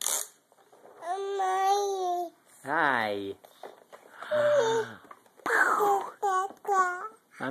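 A baby babbles and squeals loudly up close.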